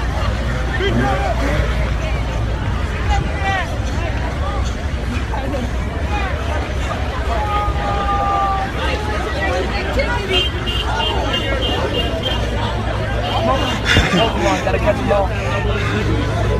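A large crowd talks and shouts loudly all around, outdoors.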